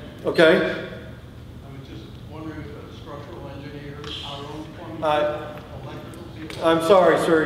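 A middle-aged man speaks with animation through a microphone in a large echoing room.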